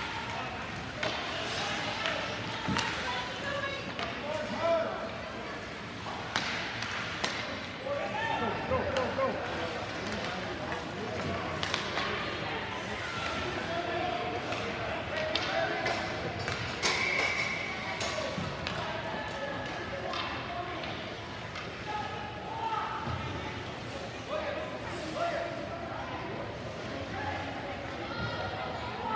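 A crowd of spectators chatters and calls out in a large echoing arena.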